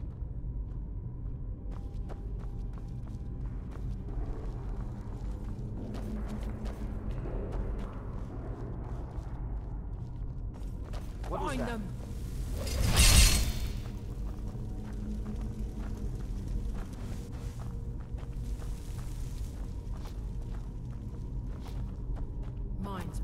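Footsteps crunch slowly over stone and dirt.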